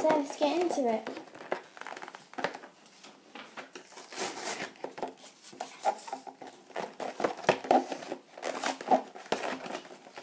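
Plastic packaging crinkles and rustles as hands open it.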